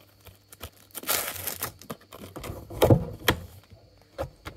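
A plastic wrapping crinkles and rustles as it is cut.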